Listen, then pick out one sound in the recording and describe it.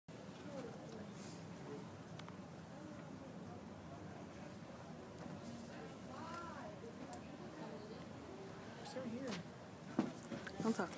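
Teenagers chatter and talk at once in a room.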